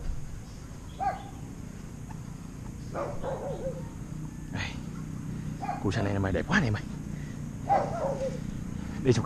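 A bird chirps and calls close by.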